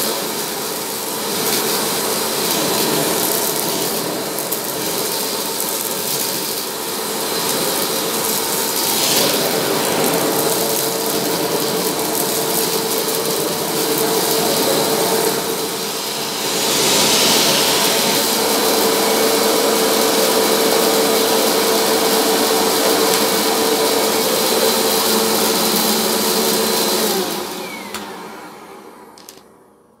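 A vacuum cleaner runs with a steady roar and then winds down.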